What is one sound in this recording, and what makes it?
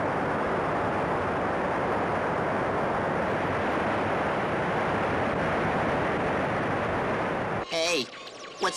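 A spacecraft's engines roar steadily.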